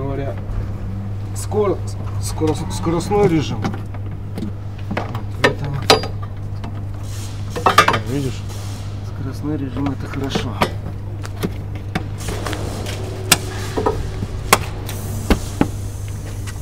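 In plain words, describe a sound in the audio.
Plastic parts click and knock as a man works on a car's engine.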